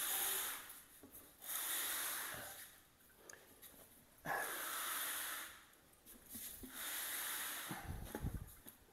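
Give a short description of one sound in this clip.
A heavy ceramic toilet scrapes across cardboard.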